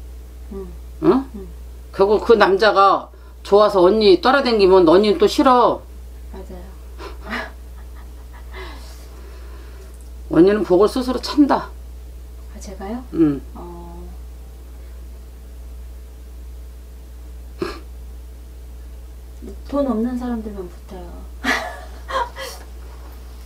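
A middle-aged woman speaks expressively, close by, with pauses.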